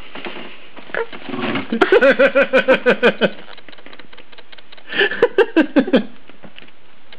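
A small dog growls and whines playfully up close.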